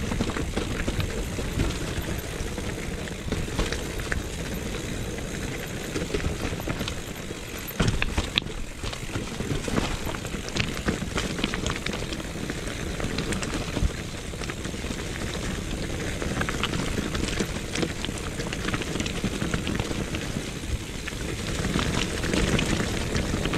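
Wind rumbles past close by.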